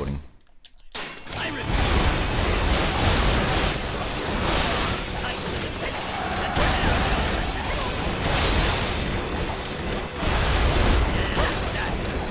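Swords clash and slash amid the loud din of a battle.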